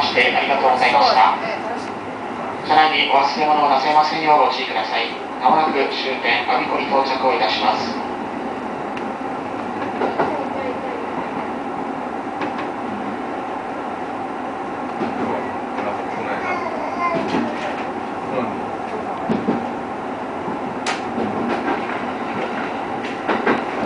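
Wheels click over rail joints.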